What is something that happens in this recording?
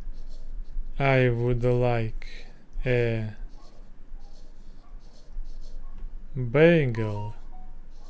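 A young man speaks slowly and calmly, close to a microphone.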